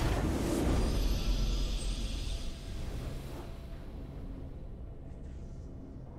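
A triumphant game fanfare plays and fades.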